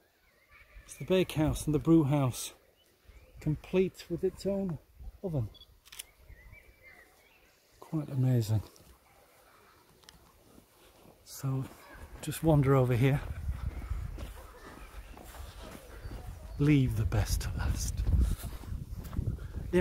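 A middle-aged man talks with animation close to a microphone, outdoors.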